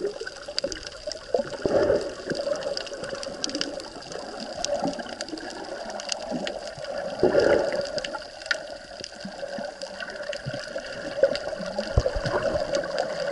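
Water rushes and gurgles in muffled bursts underwater.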